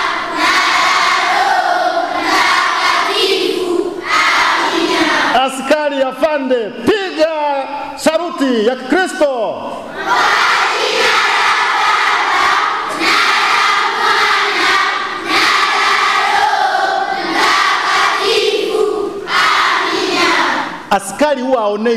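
A large choir of children sings together in a big echoing hall.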